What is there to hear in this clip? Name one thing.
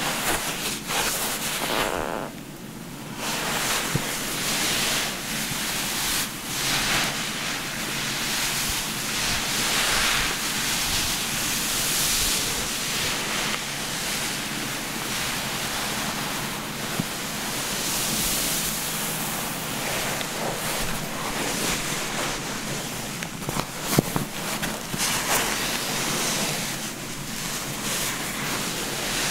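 A towel rubs and rustles against wet hair close by.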